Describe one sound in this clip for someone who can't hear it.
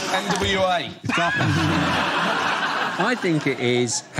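A middle-aged man speaks cheerfully into a microphone.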